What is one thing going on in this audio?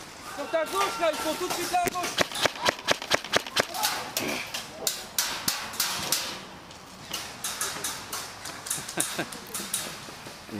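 An airsoft gun fires rapid clicking shots close by.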